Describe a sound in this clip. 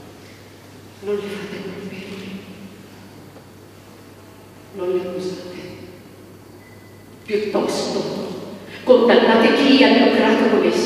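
A woman sings through a microphone in an echoing room.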